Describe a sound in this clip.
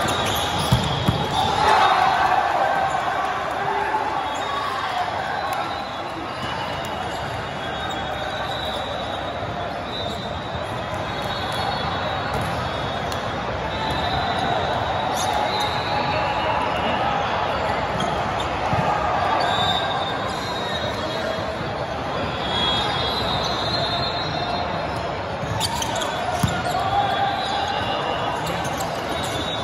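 Squeaky sneakers squeal on a court floor.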